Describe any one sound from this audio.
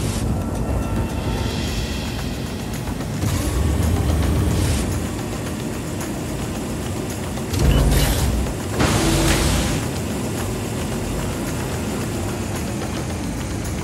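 A jet engine roars steadily, swelling louder at times.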